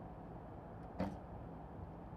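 A bowstring snaps as an arrow is released.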